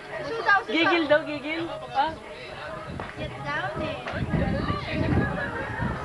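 A young child babbles and squeals close by.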